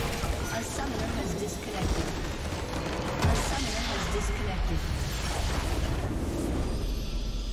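Magic spells blast and crackle in a video game battle.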